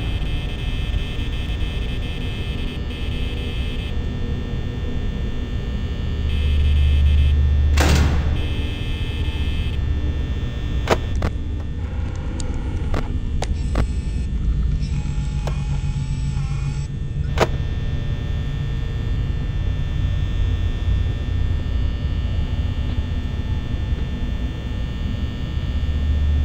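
A fan hums steadily.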